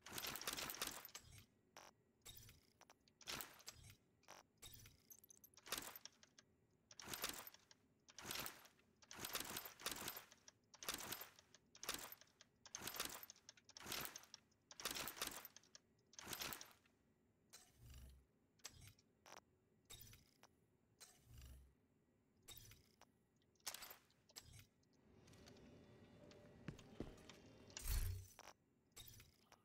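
Short whooshing interface sounds play quickly, one after another.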